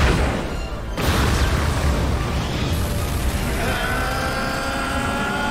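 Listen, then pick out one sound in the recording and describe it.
An energy blast roars and crackles loudly.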